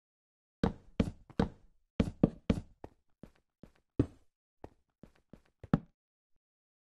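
Wooden blocks are placed with short knocking thuds.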